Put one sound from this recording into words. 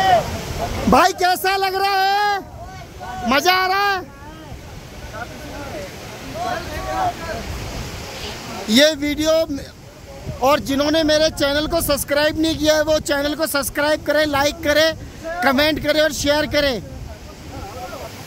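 A group of men chant together loudly, close by.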